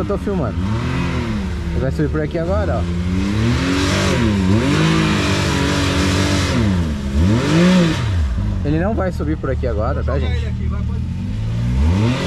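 Off-road vehicle engines rev up and down loudly.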